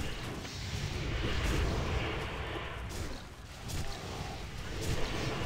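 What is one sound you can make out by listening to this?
Magic spells crackle and whoosh in a fast fantasy battle.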